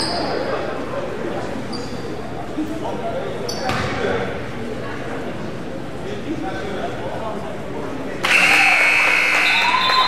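A basketball bounces on the hardwood floor.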